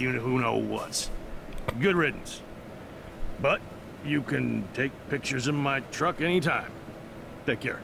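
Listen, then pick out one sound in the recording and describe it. A middle-aged man speaks calmly and gruffly, close by.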